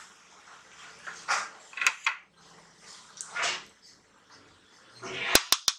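A spoon scrapes through thick sauce in a pot.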